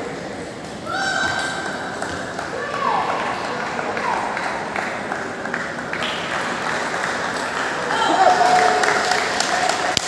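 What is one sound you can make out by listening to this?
Sports shoes squeak sharply on the floor.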